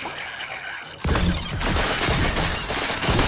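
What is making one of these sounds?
A loud blast bursts and rumbles.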